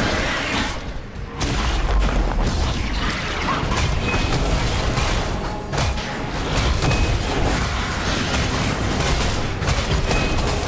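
Game spell effects whoosh and crash in rapid bursts.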